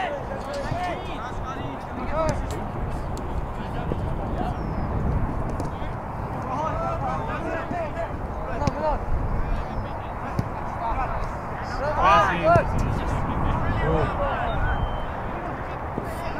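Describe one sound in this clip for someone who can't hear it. Young men shout to each other outdoors.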